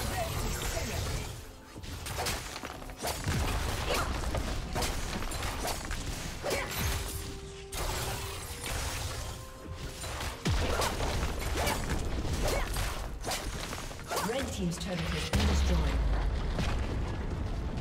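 Magic spells and weapon blows crackle and clash in quick bursts.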